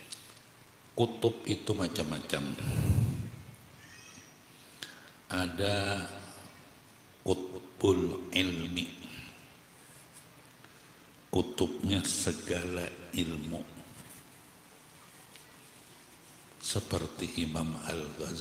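An elderly man chants prayers into a microphone in bursts, with pauses between.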